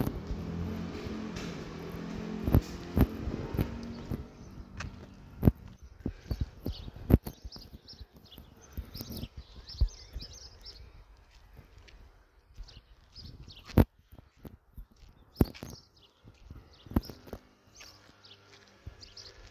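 Footsteps crunch over rough ground outdoors.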